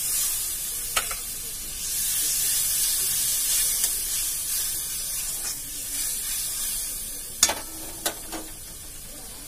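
A metal utensil clinks against a pan.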